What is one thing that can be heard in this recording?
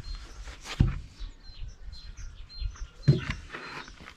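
Wooden boards knock together as they are shifted.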